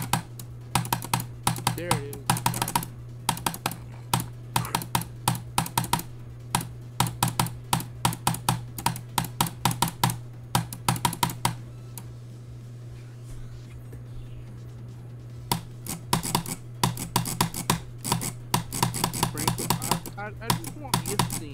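Fast electronic dance music plays with a hard, pounding beat.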